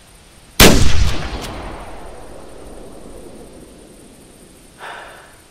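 A rifle shot cracks loudly and echoes away.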